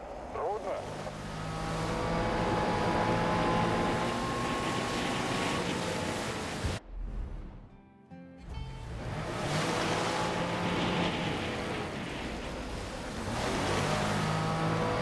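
A jet ski engine drones steadily, rising and falling in pitch.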